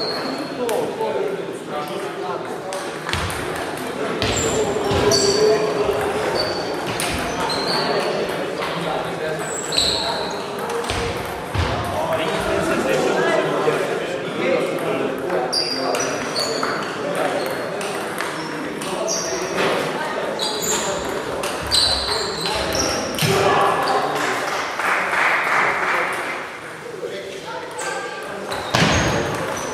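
Table tennis balls tap off paddles.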